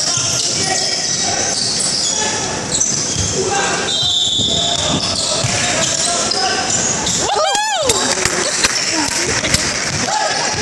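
A basketball thumps on the wooden floor.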